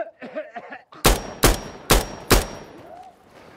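A rifle fires several sharp shots in quick succession.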